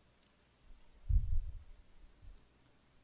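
A hand presses a sticker onto paper with a soft thump.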